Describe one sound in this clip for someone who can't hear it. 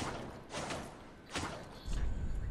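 A sword strikes with sharp metallic clangs.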